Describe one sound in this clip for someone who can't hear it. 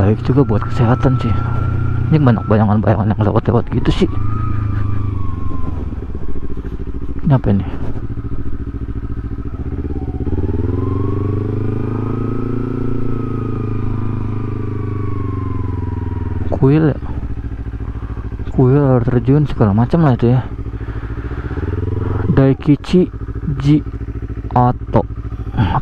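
A motorcycle engine hums steadily as the motorcycle rides slowly.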